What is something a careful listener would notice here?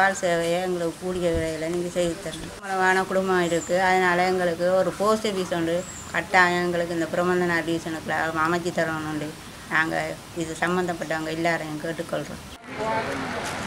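A middle-aged woman speaks with animation close to a microphone.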